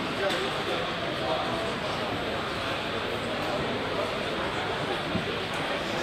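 A crowd of adults murmurs and chats in a large hall.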